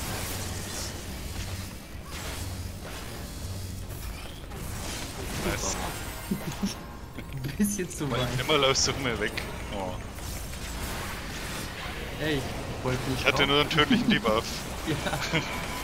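Magic blasts crackle and boom in a battle.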